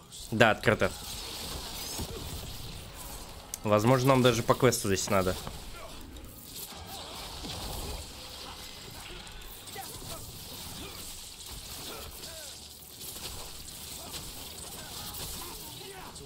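Magic blasts crackle and whoosh during a fight.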